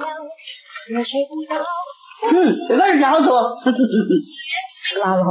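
An elderly woman talks nearby.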